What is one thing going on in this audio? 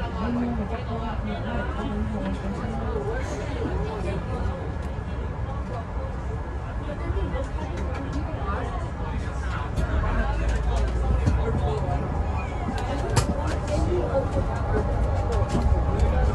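A bus engine rumbles low and steady, growing louder as the bus speeds up.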